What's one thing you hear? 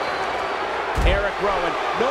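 A body slams hard onto a wrestling ring mat.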